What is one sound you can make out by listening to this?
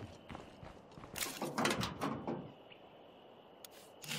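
Footsteps scuff across gravel.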